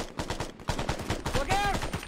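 A rifle fires a shot.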